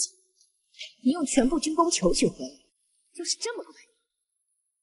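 A young woman speaks coolly and mockingly.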